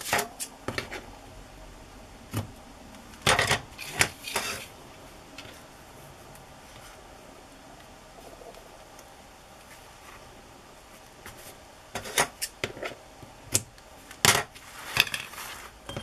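Hands rustle and tap against paper and ribbon.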